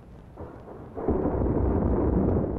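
A rocket engine roars loudly.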